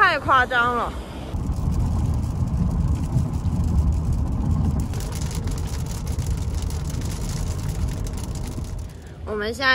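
A car rumbles steadily along a highway.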